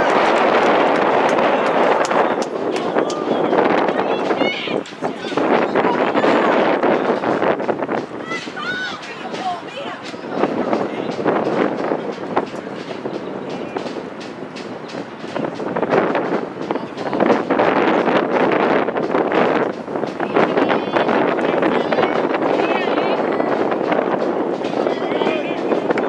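A crowd of spectators cheers and shouts outdoors at a distance.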